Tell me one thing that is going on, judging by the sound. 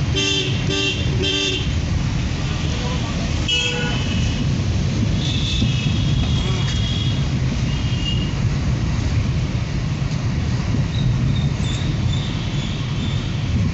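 A car engine rumbles steadily while driving along a road.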